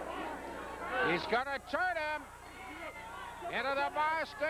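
A man in the crowd shouts loudly.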